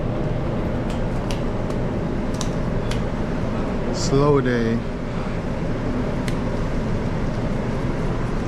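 Rubber gloves rustle and snap as they are pulled on.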